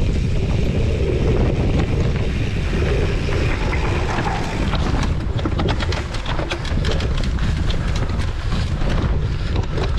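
Wind rumbles loudly against a microphone outdoors.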